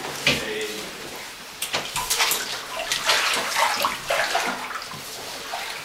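Water splashes as a man wades into a pool.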